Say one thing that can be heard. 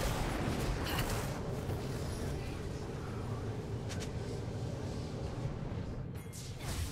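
Magic spell effects whoosh and crackle in a video game battle.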